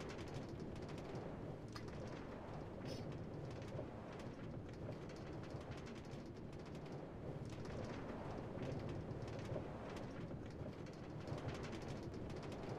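A video game minecart rumbles as it rolls along rails.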